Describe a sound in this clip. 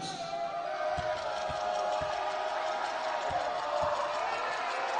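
A basketball bounces on a hardwood floor several times.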